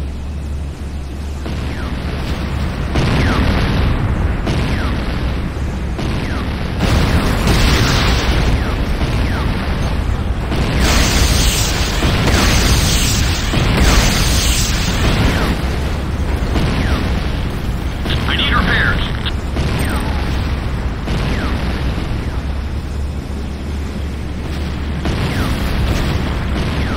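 A hovering vehicle's engine roars steadily.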